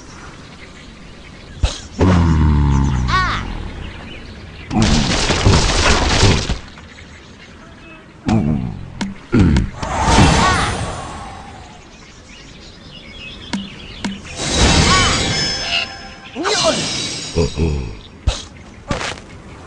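A cartoon bird squawks as it is flung through the air.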